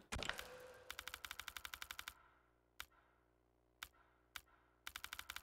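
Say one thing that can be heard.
Short electronic ticks click rapidly as a menu cursor moves.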